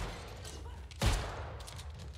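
A musket fires with a loud bang.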